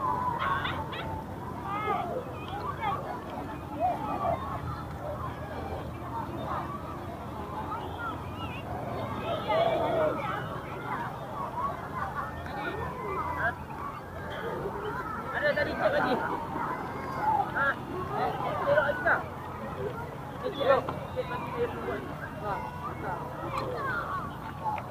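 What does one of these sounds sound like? A crowd of people chatters and calls out across a wide open space outdoors.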